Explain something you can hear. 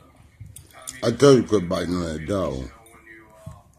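A small dog whines and yelps loudly, close by.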